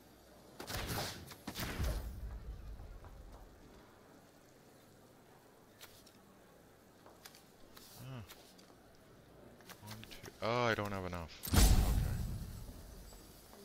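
Game sound effects whoosh as cards are played.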